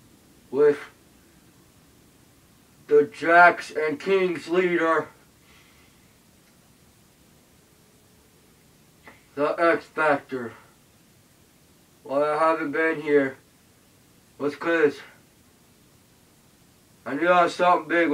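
A man speaks to the listener through a mask in short bursts with pauses.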